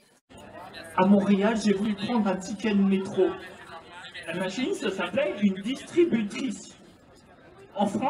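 A young man speaks into a microphone over loudspeakers.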